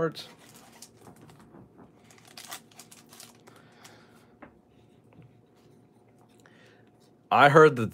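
A foil card pack crinkles and rustles in the hands.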